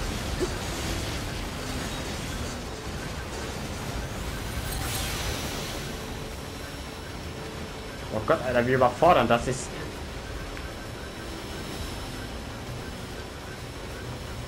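A waterfall rushes steadily.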